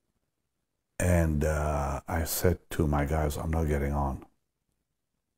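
An elderly man speaks calmly and closely into a microphone.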